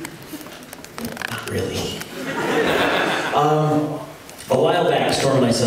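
A second man sings into a microphone.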